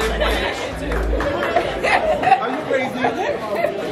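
A young man laughs and shouts close by.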